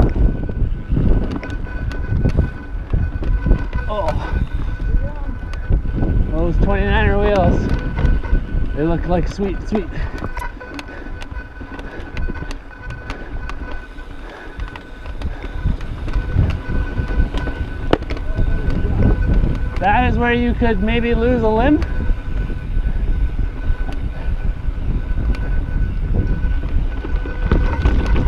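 Bicycle tyres crunch and roll over a rocky dirt trail.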